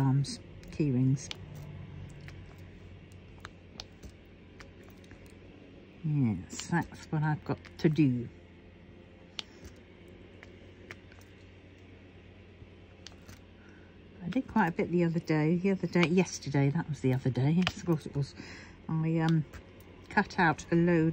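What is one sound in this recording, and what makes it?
Tiny plastic beads click softly as a pen presses them into place.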